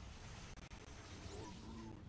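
An electric blast crackles and zaps.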